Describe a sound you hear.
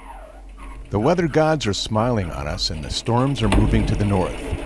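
A man speaks over an intercom.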